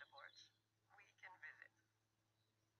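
A woman speaks calmly through a speaker.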